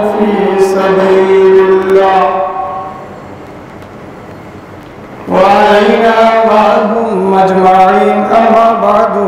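A man chants in a long, sustained melodic voice through a microphone, in an echoing room.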